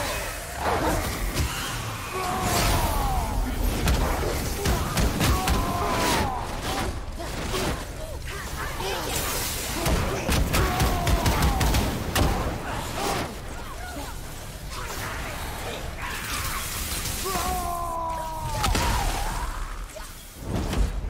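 Heavy blows thud and crash in quick succession.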